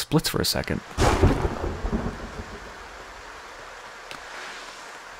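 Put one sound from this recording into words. Rain falls steadily.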